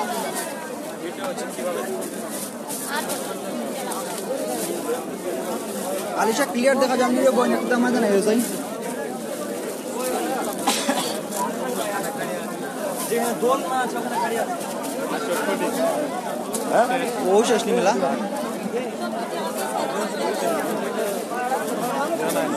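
A crowd of men talk and call out close by, outdoors.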